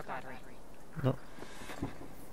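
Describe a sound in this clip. A car trunk lid thumps open.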